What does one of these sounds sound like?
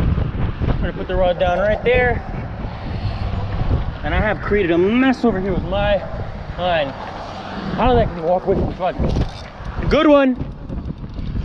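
A man talks casually close to the microphone.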